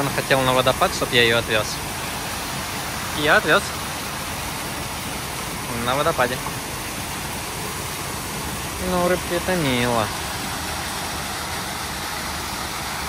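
A waterfall splashes steadily into a pond.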